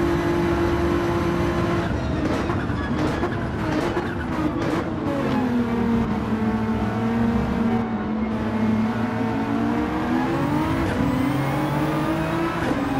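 A racing car engine roars, dropping in pitch as it slows and rising again as it speeds up.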